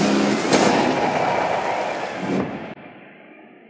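Tyres screech as an off-road buggy slides.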